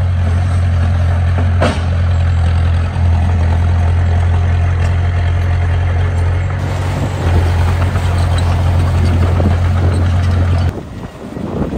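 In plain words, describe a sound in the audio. A bulldozer pushes and scrapes loose dirt.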